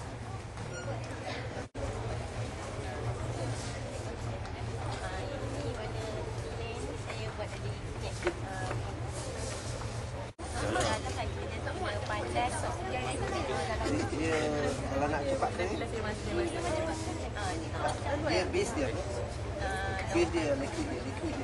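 Many people chatter in the background indoors.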